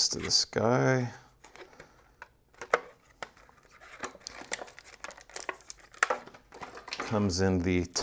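Small hard parts click and clatter as a man handles them.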